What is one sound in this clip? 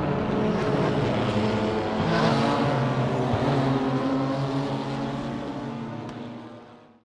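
Racing car engines roar loudly as the cars speed past, then fade away.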